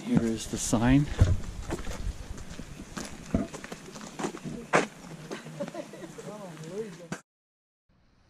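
Older men and women chat casually nearby while walking outdoors.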